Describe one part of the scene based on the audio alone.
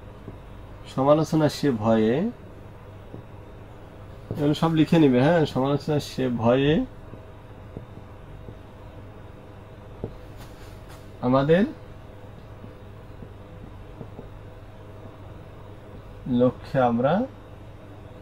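A man speaks calmly and clearly, in short phrases, close by.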